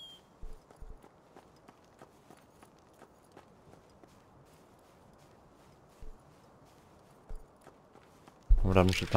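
Footsteps run quickly over gravel and grass.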